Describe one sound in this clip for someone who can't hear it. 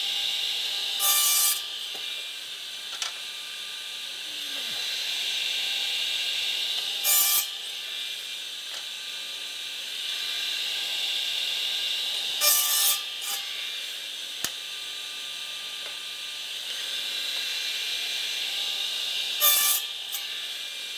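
A saw blade bites through wood in short, loud bursts.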